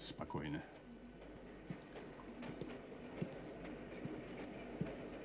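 A train carriage rumbles steadily along the tracks.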